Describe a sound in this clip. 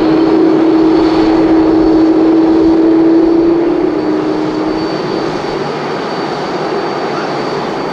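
A jet engine whines and roars loudly, then eases off slightly.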